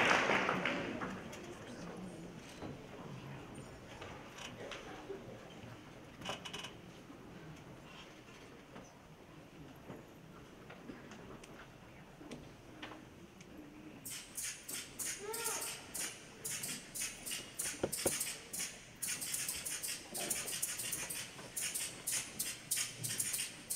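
A children's choir sings in a large hall.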